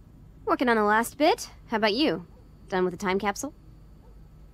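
A teenage girl asks a question in a calm voice.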